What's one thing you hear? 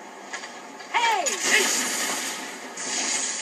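A magic blast bursts with a loud rushing whoosh.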